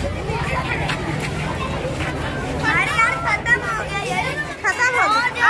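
Young boys speak loudly together, close by.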